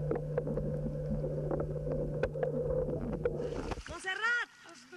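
Underwater bubbles rumble and gurgle close by.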